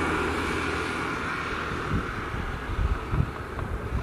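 A motorcycle rides past on an open road.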